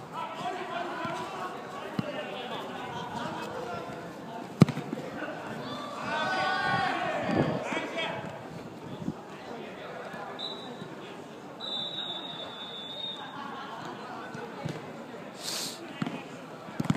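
Young men shout and call out to each other.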